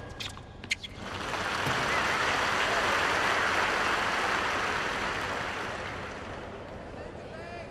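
A large crowd applauds and cheers, swelling and slowly fading.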